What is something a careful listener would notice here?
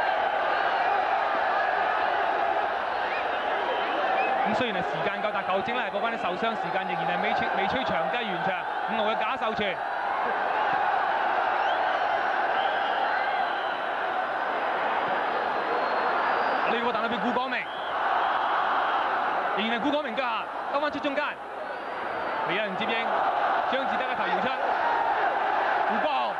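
A crowd murmurs steadily outdoors.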